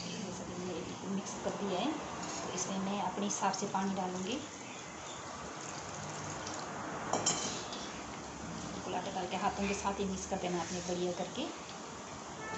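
A middle-aged woman talks calmly close by.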